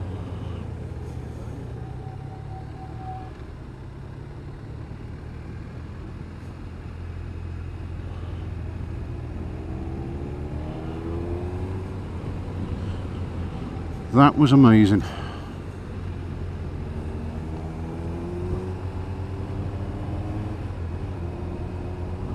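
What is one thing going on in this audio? Wind rushes past a moving rider.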